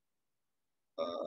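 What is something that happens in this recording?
A young man begins to speak through an online call.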